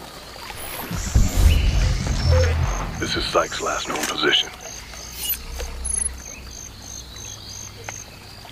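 Water sloshes and splashes.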